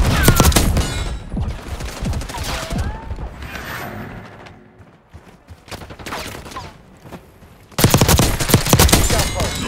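Rapid gunfire rattles loudly.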